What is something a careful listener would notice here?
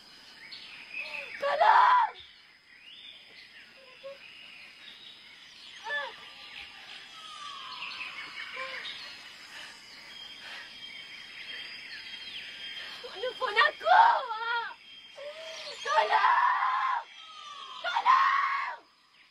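A young woman cries out and sobs in distress, close by.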